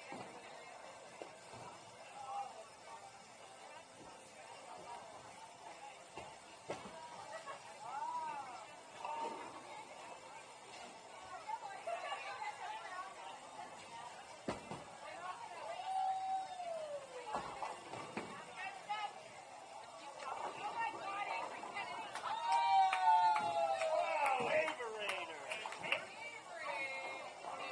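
A crowd of young men and women chatters in a large, echoing hall.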